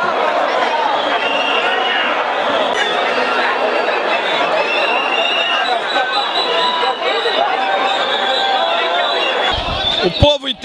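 A large crowd chants and shouts outdoors.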